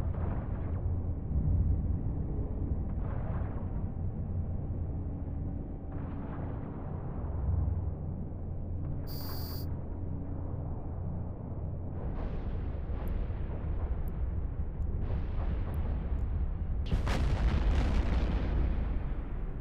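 Deep booming rumble of space weapons firing and explosions rolls on throughout.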